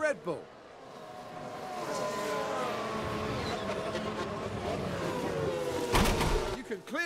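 Racing car engines roar and whine past.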